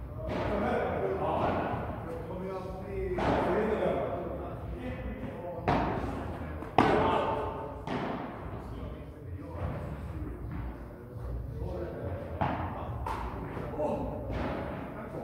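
Men talk and call out across the court.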